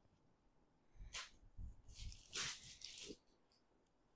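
Fabric rustles as a woman unfolds a sari.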